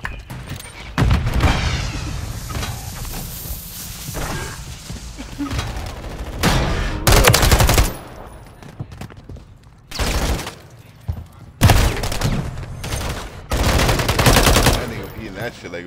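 Gunshots and explosions go off loudly in bursts.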